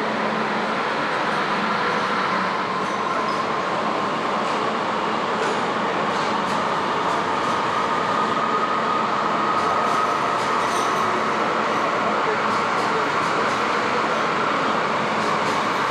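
Footsteps tap on a hard platform.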